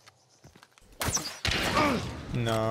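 A crossbow fires a bolt.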